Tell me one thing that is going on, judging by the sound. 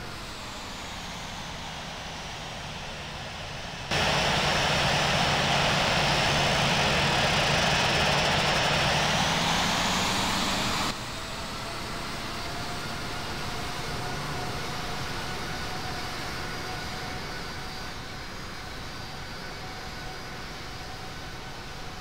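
Jet engines whine and roar steadily as an airliner taxis.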